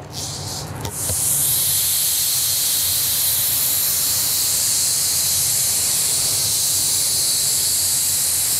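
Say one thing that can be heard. A spray gun hisses steadily as it sprays paint.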